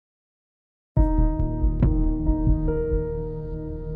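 A loud music track with a deep beat starts playing.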